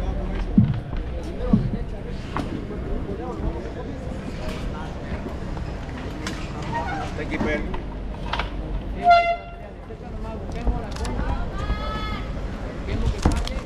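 A crowd chatters and calls out in a large open space.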